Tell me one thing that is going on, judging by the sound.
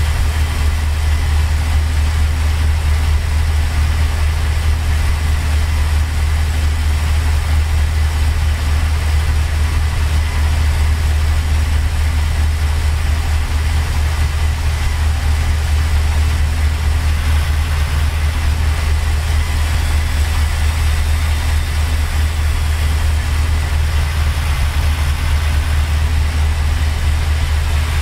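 Tyres roll on the road with a steady rush.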